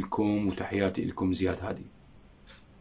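A man plucks a short run of notes on an oud, close by.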